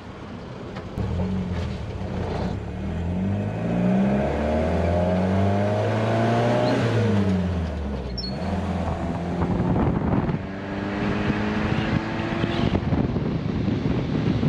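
An old car engine hums and revs, rising and falling as the car shifts gears.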